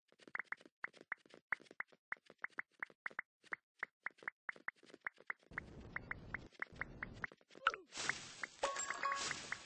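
Quick, sharp hit sounds from a video game fight repeat rapidly.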